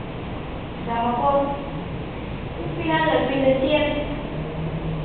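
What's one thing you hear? A young woman speaks calmly.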